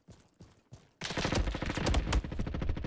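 Gunfire rattles loudly in rapid bursts.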